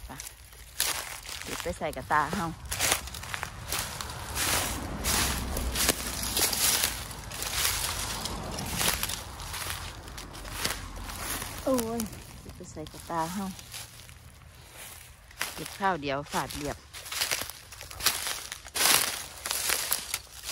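Footsteps crunch through dry grass and brittle twigs.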